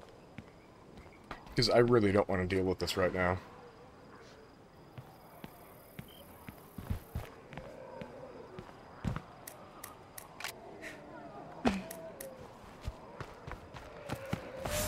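Footsteps thud softly on hard ground.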